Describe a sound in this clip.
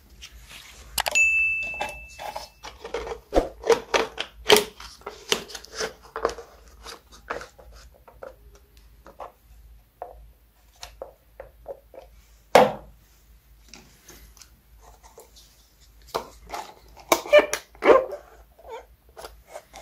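A pine cone scrapes and rustles against a plastic cup.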